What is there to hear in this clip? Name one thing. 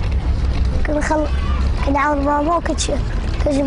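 A young boy speaks calmly and close to a microphone.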